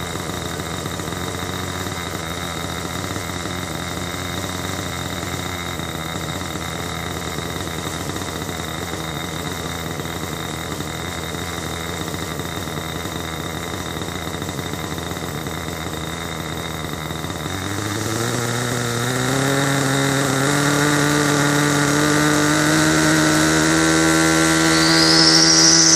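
A small engine hums steadily close by, then revs up with a rising, droning whine.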